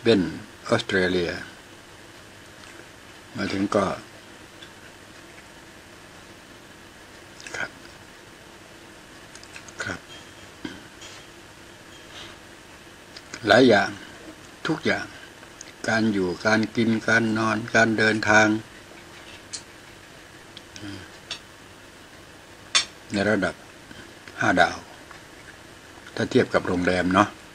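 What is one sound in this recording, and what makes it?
A man talks close by in short, calm bursts.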